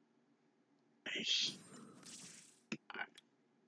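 A sword strike whooshes and clashes in a burst of game sound effects.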